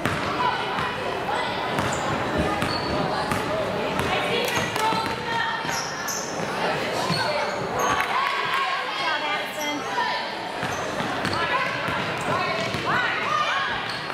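A basketball bounces as a player dribbles.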